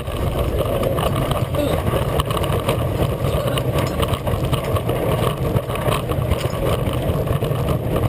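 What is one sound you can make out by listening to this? Wind buffets loudly past the riders.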